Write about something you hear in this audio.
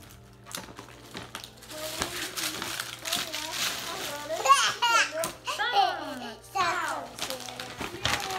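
Wrapping paper rustles and tears.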